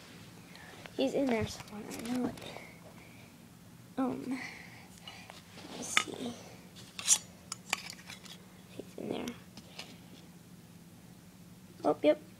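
A glass jar clinks and rattles as it is handled.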